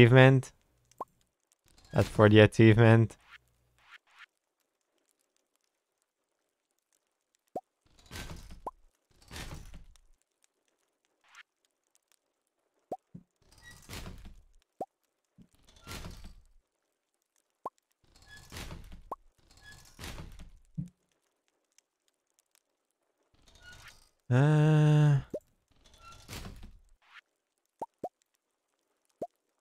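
Short soft blips sound as a game menu is browsed.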